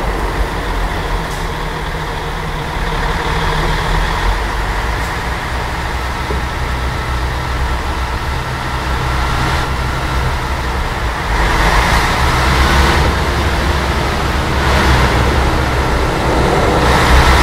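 A heavy bus engine rumbles steadily.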